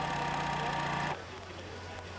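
A tractor engine runs with a steady hum.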